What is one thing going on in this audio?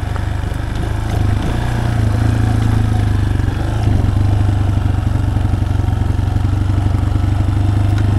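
Tyres crunch over a dirt and gravel track.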